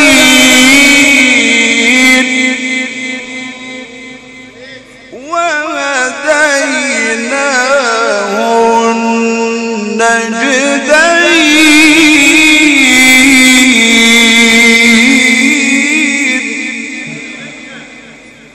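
A man chants melodically into a microphone, holding long wavering notes in a reverberant hall.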